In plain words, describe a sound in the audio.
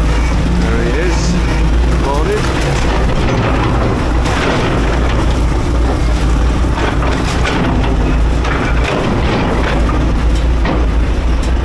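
A heavy excavator engine rumbles steadily nearby.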